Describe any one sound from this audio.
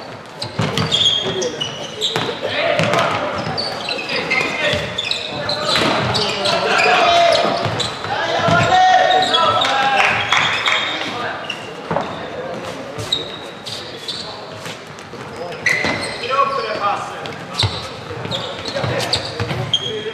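Sticks clack against a ball and each other in a large echoing hall.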